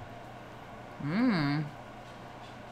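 A young woman hums with pleasure while eating.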